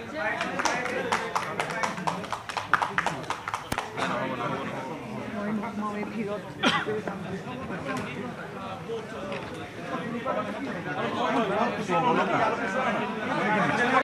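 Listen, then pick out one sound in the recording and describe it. Several men chat and laugh nearby.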